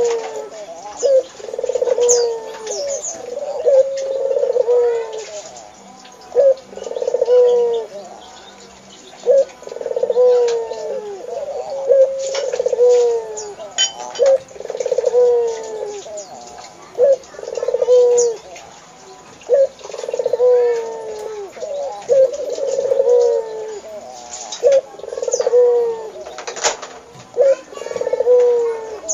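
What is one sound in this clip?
A dove coos in repeated low, rolling calls close by.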